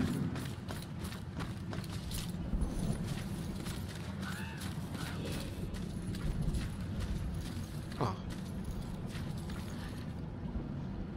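Footsteps crunch quickly through dry leaves.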